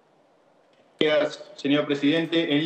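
A man speaks loudly through a microphone in a large hall.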